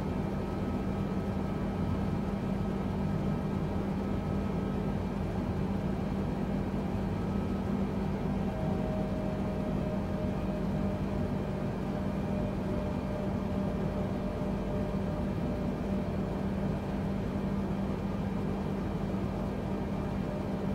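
Jet engines hum with a steady low drone.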